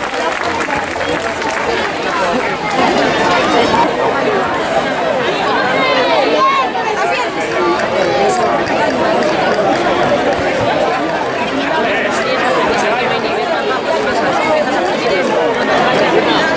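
A large crowd of men, women and children chatters outdoors.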